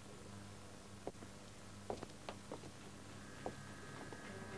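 A door creaks and clicks shut.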